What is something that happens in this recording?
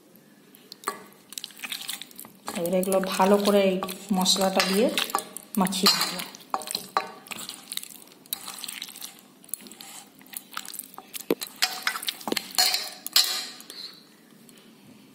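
Hands squish raw chicken in a wet spice paste.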